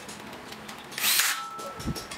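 An electric drill whirs briefly.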